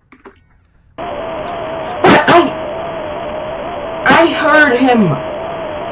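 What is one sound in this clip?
A harsh, loud electronic screech blares suddenly and keeps going.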